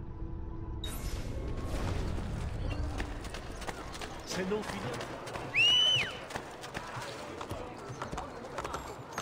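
Footsteps tap on stone pavement.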